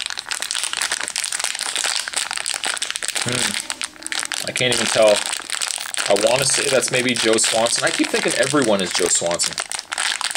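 Foil wrapping crinkles and rustles close by.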